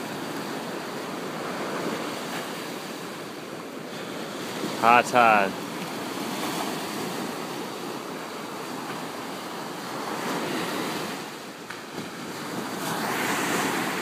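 Waves break and wash up onto the shore outdoors in steady surf.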